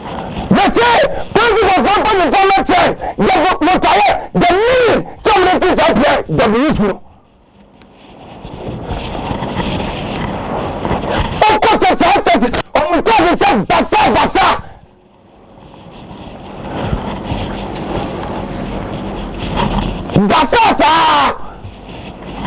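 A young man shouts with animation into a microphone, his voice clipping loudly.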